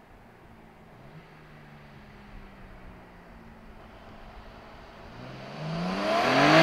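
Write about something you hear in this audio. A car engine hums in the distance, then roars louder and rises in pitch as the car approaches.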